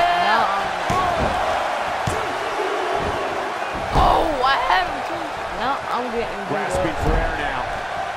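Bodies slam with heavy thuds onto a wrestling ring mat.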